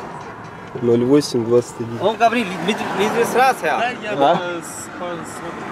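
A man answers from outside, through an open car window.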